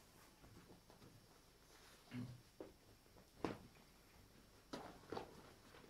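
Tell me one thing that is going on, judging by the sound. Cloth rustles as a man handles a sack.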